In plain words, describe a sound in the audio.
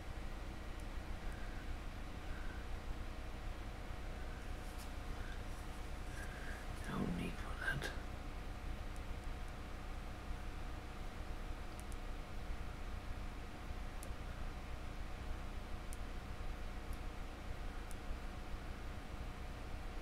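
A paintbrush brushes softly against a hard surface.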